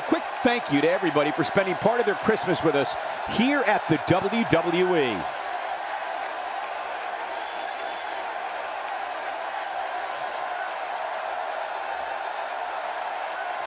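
A large crowd cheers and applauds in a big echoing hall.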